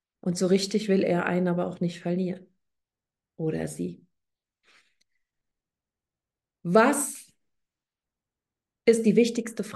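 A woman speaks calmly with pauses, heard through an online call.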